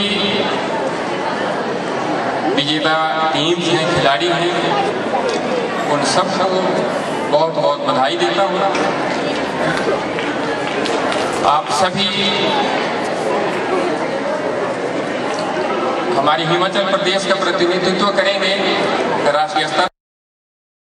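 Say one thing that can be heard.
A middle-aged man speaks calmly into a microphone, heard through loudspeakers outdoors.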